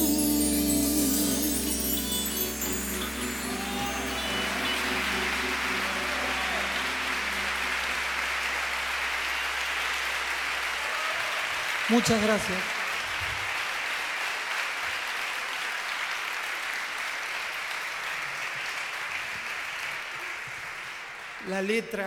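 An audience applauds loudly in a large echoing hall.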